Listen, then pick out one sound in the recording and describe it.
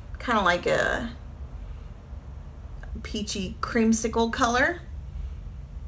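A young woman speaks briefly and calmly into a nearby microphone.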